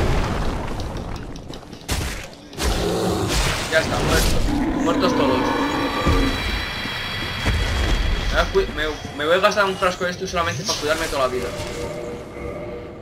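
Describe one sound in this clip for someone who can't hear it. Heavy blows clash and thud.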